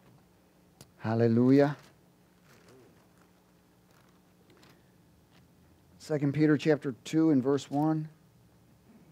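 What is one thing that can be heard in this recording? A man speaks into a microphone in short bursts, with long pauses.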